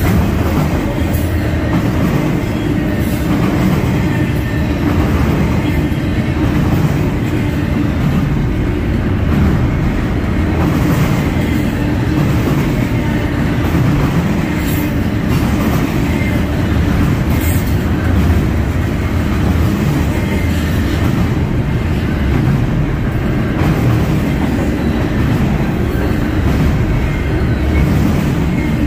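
A long freight train rumbles steadily past close by.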